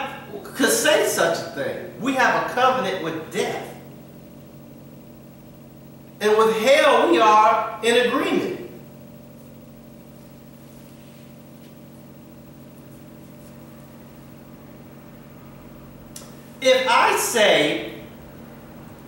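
A man speaks with animation in a room with a slight echo, pausing between bursts.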